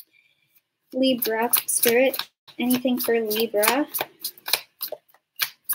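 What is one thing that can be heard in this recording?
Cards shuffle and slap together in a young woman's hands.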